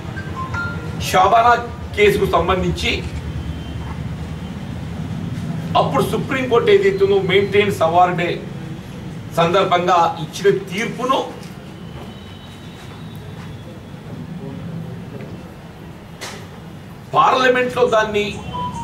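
An elderly man speaks forcefully into a microphone, in bursts with pauses.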